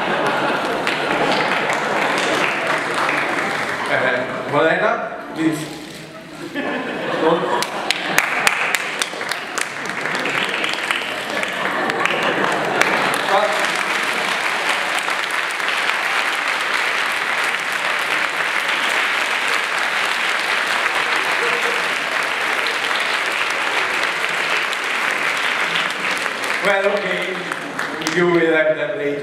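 An audience claps steadily in a large echoing hall.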